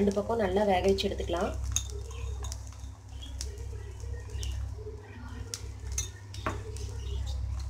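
A flatbread sizzles and crackles in ghee on a hot griddle.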